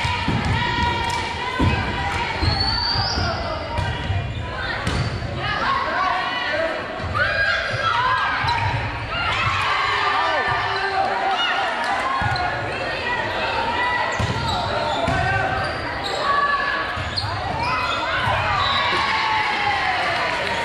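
Sneakers squeak on a wooden gym floor.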